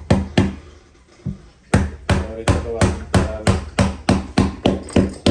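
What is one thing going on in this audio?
A hammer strikes wood in quick, repeated blows.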